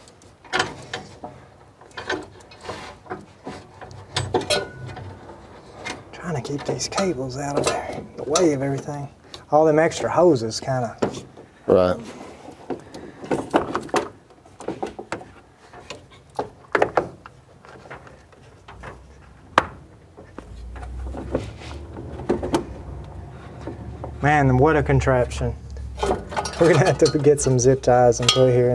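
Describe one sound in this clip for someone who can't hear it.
Metal clamps and cables click and knock as they are handled.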